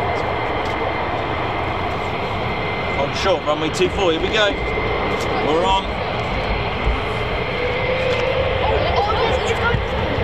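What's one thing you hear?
A jet engine roars and whines steadily nearby.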